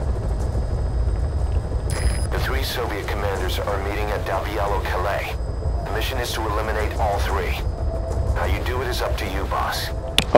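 A man speaks in a low, gruff voice nearby.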